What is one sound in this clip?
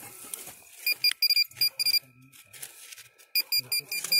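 A metal detector beeps in quick, sharp bursts.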